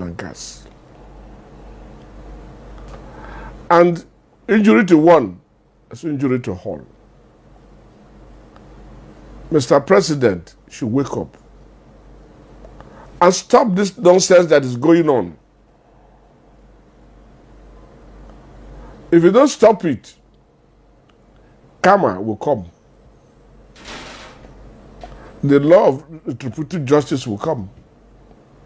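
An elderly man speaks forcefully and with emphasis, close to a microphone, with long pauses between phrases.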